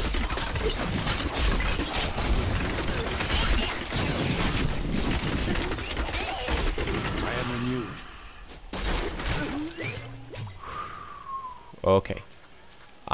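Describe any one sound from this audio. Game combat sounds clash and crackle in quick bursts of spells and hits.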